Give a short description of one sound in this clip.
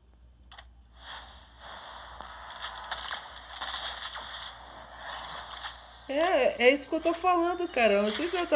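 Electronic whooshing and crackling effects play as a game animation runs.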